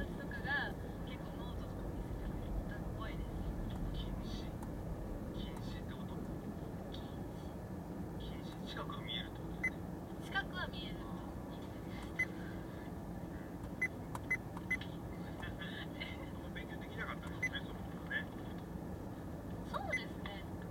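A car engine hums steadily inside the car as it moves slowly in traffic.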